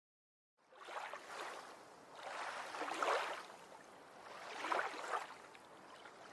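Turtles splash and paddle in shallow water.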